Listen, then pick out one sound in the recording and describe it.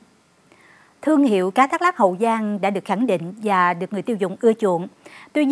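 A young woman speaks clearly and evenly into a microphone.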